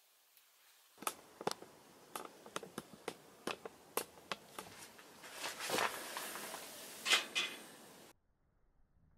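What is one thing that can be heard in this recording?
Burning wood crackles and pops.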